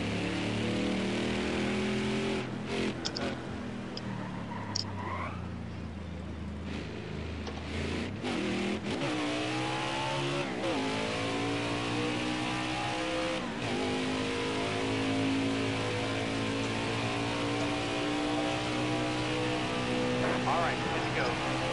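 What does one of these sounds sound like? A V8 stock car engine roars at high revs.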